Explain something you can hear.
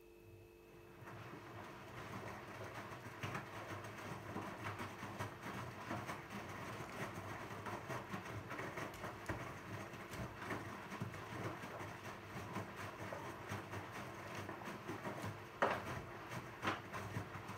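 A washing machine drum turns, with laundry tumbling and swishing inside.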